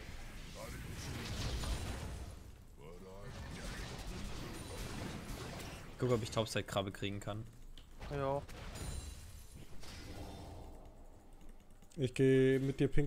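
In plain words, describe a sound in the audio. Spell effects and clashes crackle and whoosh from a game.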